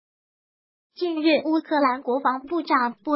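A young woman speaks calmly and clearly, as if reading out the news.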